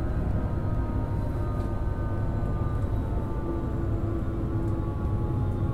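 A train's electric motor whines with steady tones that slowly fall as the train slows.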